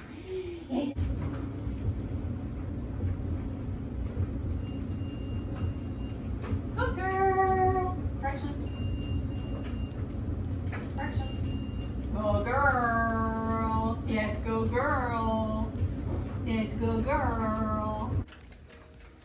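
A clothes dryer rumbles and hums steadily.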